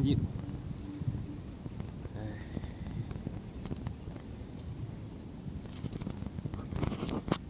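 A low rumble of city traffic hums in the distance.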